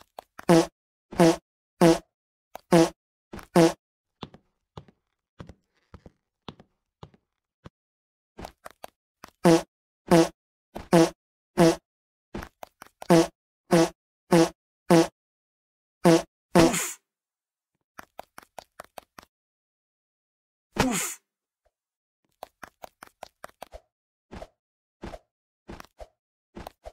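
A short springy jump sound effect plays again and again in quick bursts.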